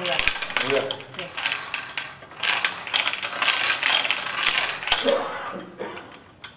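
Balls rattle and clatter inside a spinning metal drum.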